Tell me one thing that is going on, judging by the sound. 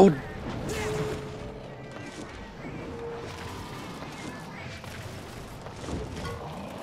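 Game sword strikes ring out.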